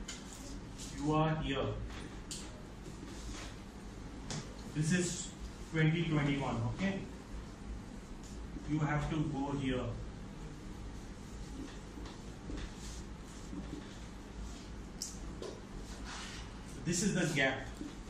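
A middle-aged man speaks in short, calm phrases close by.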